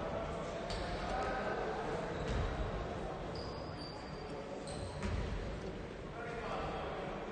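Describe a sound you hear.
Players shout to each other in a large echoing gym.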